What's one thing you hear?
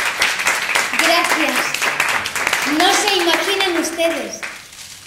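A young woman sings in a large echoing hall.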